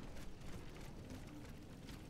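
Footsteps clomp up wooden stairs.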